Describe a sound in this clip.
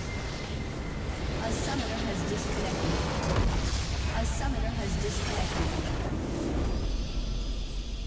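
A crystal structure explodes with a loud, rumbling blast.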